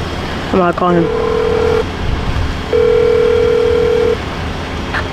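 A phone ringing tone beeps through a speaker.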